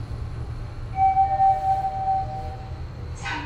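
An elevator chime sounds briefly.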